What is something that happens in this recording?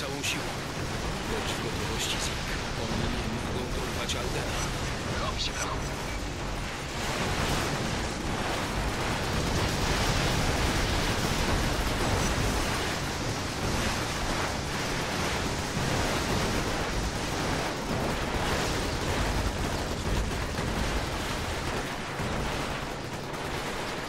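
Gunfire and explosions boom and crackle in a game.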